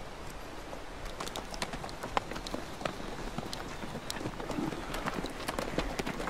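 Horse hooves clop on stones.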